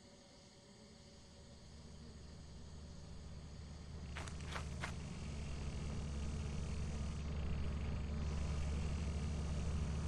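A vehicle engine rumbles low and grows louder.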